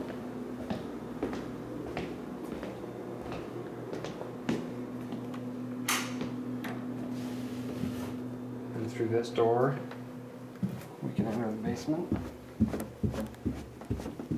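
Footsteps thud on a floor and down stairs.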